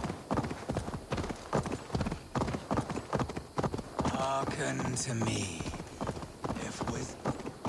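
A horse's hooves thud steadily on a dirt path.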